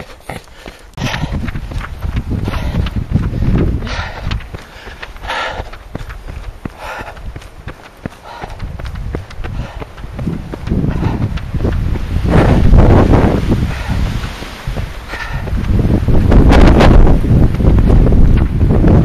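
Strong wind gusts roar outdoors, buffeting the microphone.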